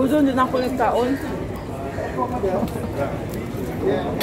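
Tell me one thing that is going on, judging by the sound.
Flatbread crackles as a woman tears it.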